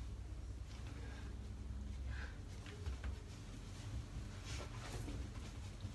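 A towel rustles against a man's face.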